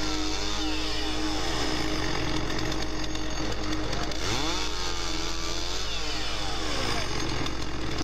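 A chainsaw engine revs up and down loudly.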